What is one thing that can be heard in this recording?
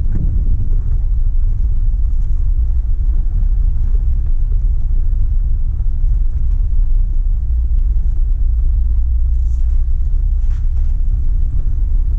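A vehicle rolls steadily over a gravel road.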